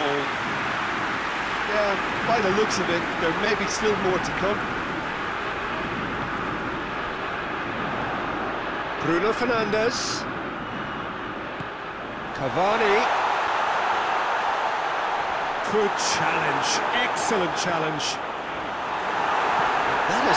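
A stadium crowd roars and cheers steadily throughout.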